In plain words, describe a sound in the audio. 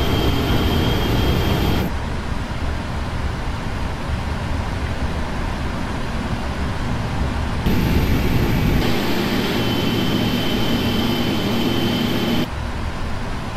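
A jet engine whines with a high, thin tone.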